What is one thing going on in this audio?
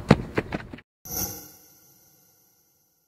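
A whoosh sweeps past.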